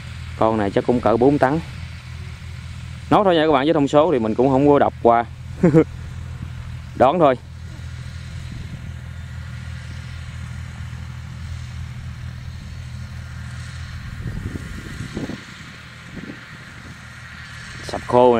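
A combine harvester engine drones steadily nearby.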